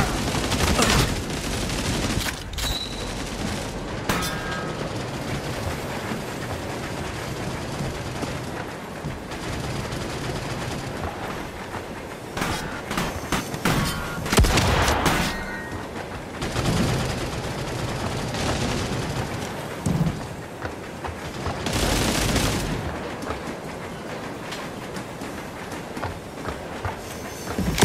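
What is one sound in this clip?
A steam train rumbles steadily along the tracks.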